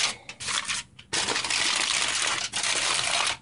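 Aluminium foil crinkles as it is folded over.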